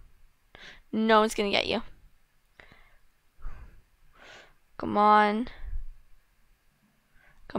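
A young girl talks with animation into a headset microphone.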